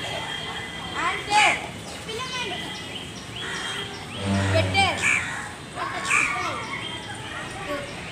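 Children shout and call out with excitement outdoors.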